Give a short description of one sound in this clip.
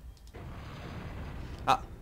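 A small explosion bursts with a sharp bang.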